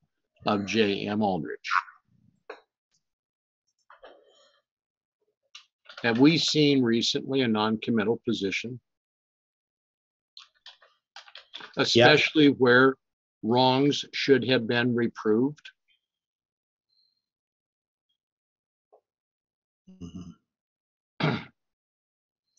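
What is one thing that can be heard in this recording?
An older man speaks calmly and close to a microphone, in short bursts with pauses.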